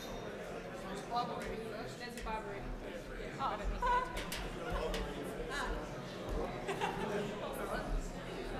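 A woman talks quietly in a large room.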